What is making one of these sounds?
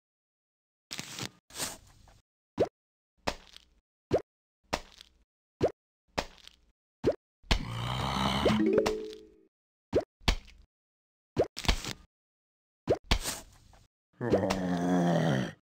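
Soft pops repeat as cartoon plants shoot at a zombie.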